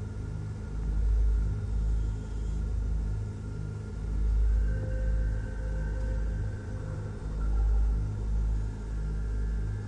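A spaceship engine rumbles low, swelling and fading in slow waves.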